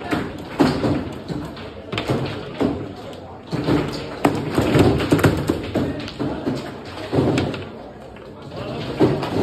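A ball knocks and clacks against foosball figures and the table walls.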